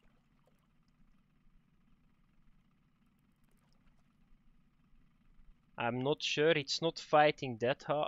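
A fishing reel whirs and clicks as it is wound in.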